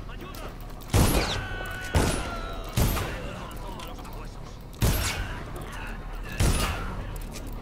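Loud explosions burst and rumble one after another.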